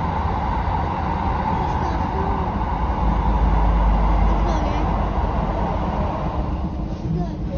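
A train roars loudly through a tunnel, then the roar drops as the train comes out.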